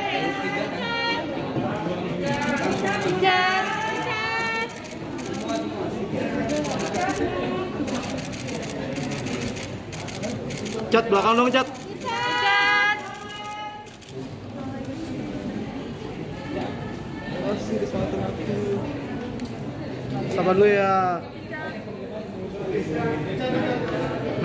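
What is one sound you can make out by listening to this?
A crowd of people chatter and call out loudly in a room.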